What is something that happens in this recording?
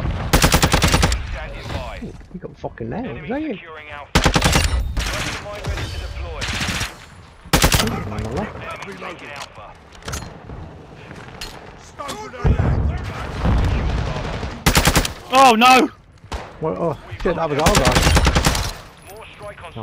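Rapid gunfire rattles in short, loud bursts.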